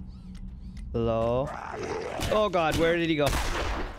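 A zombie snarls and groans close by.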